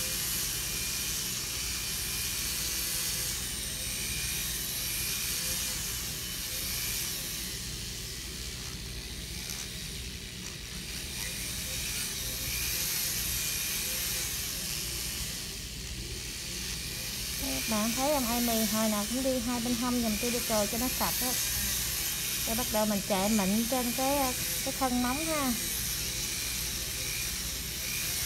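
An electric nail drill whirs steadily.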